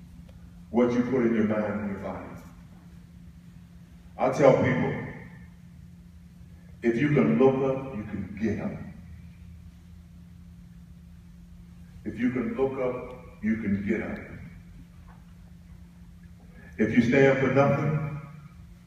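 A man speaks slowly into a microphone over loudspeakers in a large room, pausing between phrases.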